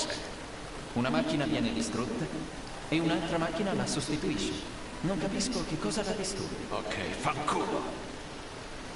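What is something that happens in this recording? An older man speaks in a rough, weary voice.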